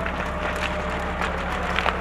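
A man talks into a handheld radio close by.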